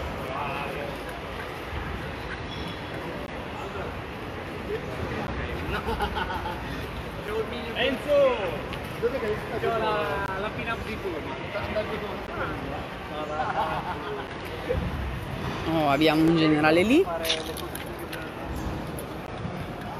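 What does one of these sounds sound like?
Men and women talk nearby in an outdoor crowd.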